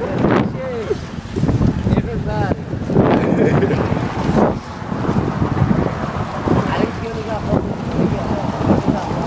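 Strong wind buffets the microphone outdoors.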